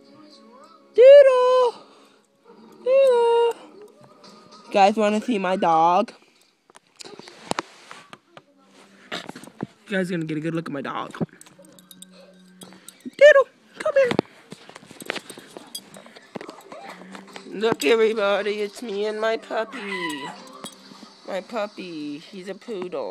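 A teenage boy talks close up, loudly and with animation, now and then in a high sing-song voice.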